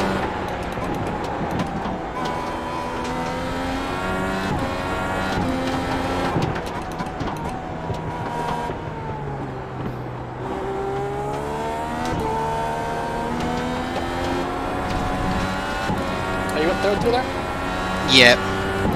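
A racing car engine roars loudly, its pitch climbing and dropping as the gears change.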